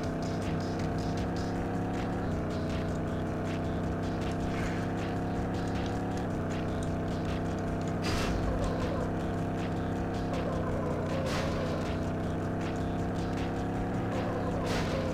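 A racing car engine roars at high revs.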